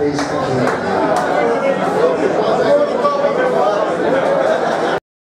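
A rock band plays loudly on stage with distorted electric guitars.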